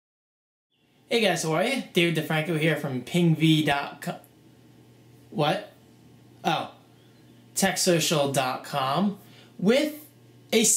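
A young man talks casually and close by, with pauses between phrases.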